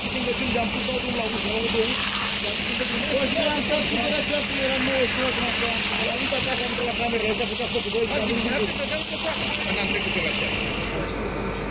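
A fire hose sprays water with a steady hiss.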